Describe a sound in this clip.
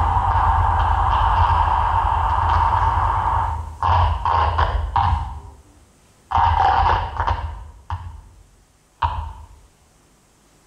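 A modular synthesizer plays loud buzzing electronic tones that cut off in sudden bursts.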